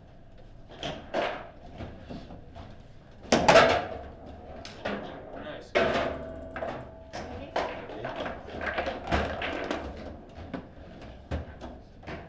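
A hard ball knocks sharply against plastic figures and table walls.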